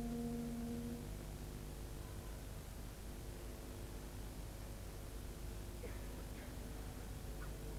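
A wind band plays softly.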